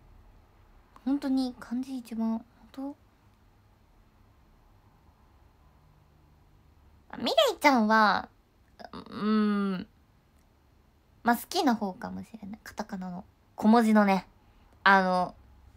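A young woman talks close to a microphone, in short animated bursts.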